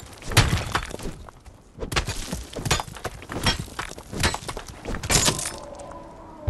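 A pickaxe strikes rock with sharp, repeated cracks.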